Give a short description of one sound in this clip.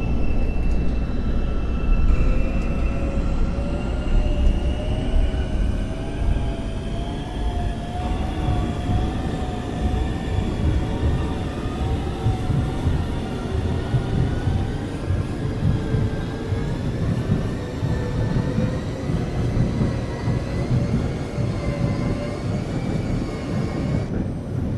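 A train rumbles steadily along its track.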